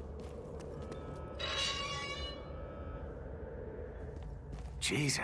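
Footsteps run on a stone floor.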